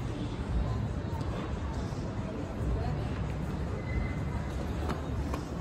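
Footsteps tap on paving nearby.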